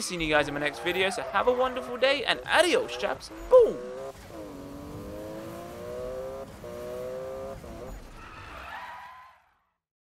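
Tyres screech on a wet road.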